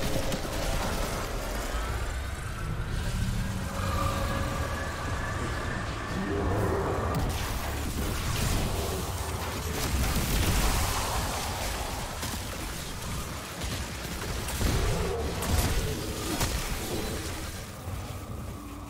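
Energy blasts explode with a deep rumble.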